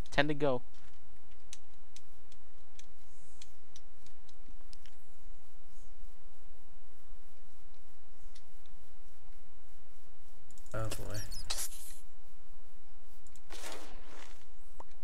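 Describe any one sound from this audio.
Footsteps tread softly on grass and dirt.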